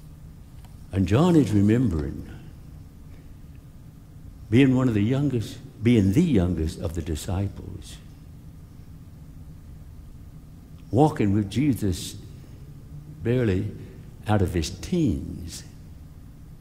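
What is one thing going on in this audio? A middle-aged man speaks slowly and earnestly through a microphone, with long pauses.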